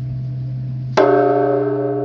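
A large bell is struck with a wooden beam and booms deeply.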